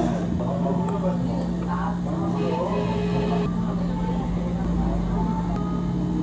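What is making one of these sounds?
A thick blended drink glugs out of a pitcher.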